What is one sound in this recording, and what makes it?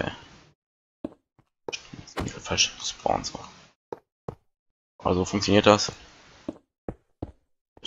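Blocks are set down with short, soft thuds.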